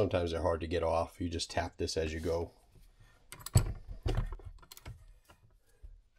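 Metal parts clink together.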